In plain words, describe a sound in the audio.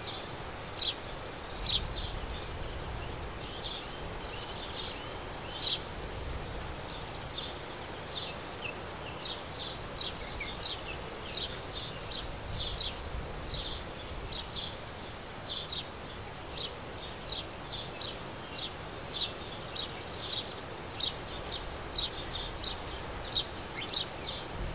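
Small birds chirp and tweet repeatedly close by.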